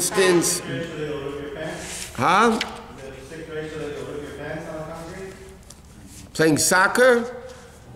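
An elderly man speaks calmly and with expression into a nearby microphone.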